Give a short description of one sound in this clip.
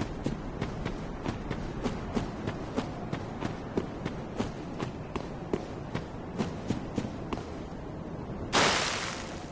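Footsteps crunch steadily over stony ground.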